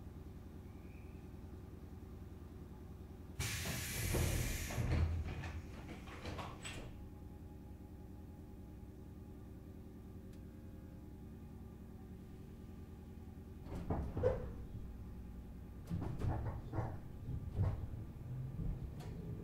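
An electric train's motors hum steadily.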